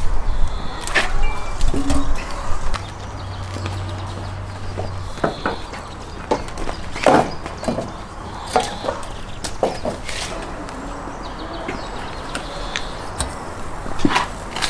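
A heavy ceramic lid knocks and scrapes as it is lifted.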